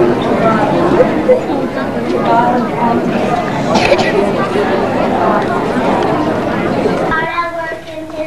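A crowd of children chatter noisily in an echoing hall.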